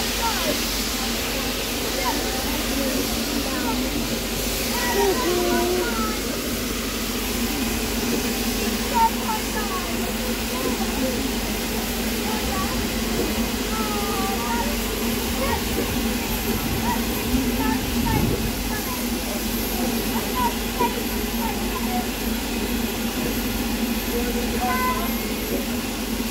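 Women and children chat quietly nearby.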